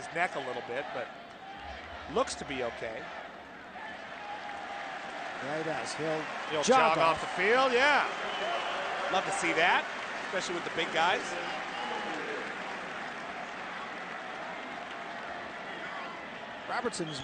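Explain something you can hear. A large crowd claps and cheers in a stadium.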